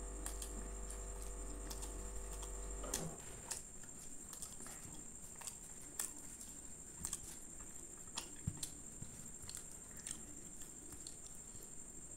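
Fingers tear soft flatbread close up.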